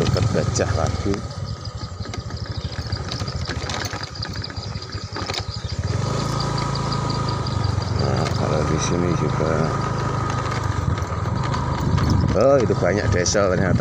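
A motorbike engine hums steadily while riding.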